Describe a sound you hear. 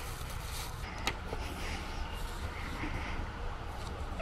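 A fabric cover rustles as it is pulled.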